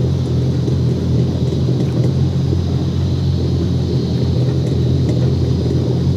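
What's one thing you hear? A boat's motor hums steadily and low.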